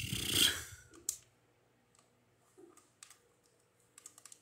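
Short game menu clicks play through a television speaker.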